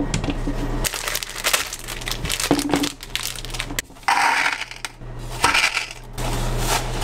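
A plastic food bag crinkles and rustles.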